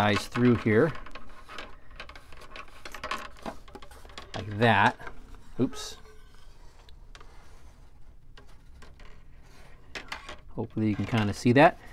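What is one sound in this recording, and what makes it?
A plastic spring clamp clicks and taps on a balsa wood frame.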